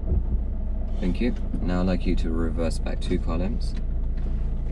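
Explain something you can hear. A man speaks calmly close by, inside a car.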